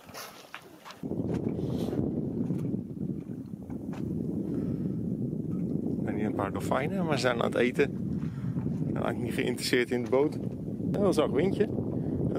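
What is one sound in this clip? Water rushes and splashes along a sailing boat's hull.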